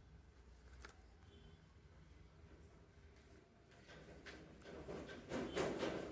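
Gloved hands scoop and rustle through loose soil.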